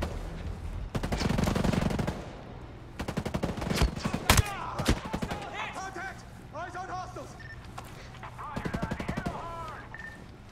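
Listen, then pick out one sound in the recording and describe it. A rifle fires rapid bursts of shots nearby.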